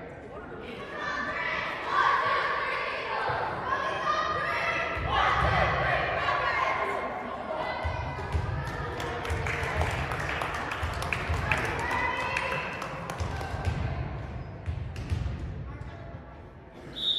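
Young girls shout and cheer in a large echoing gym.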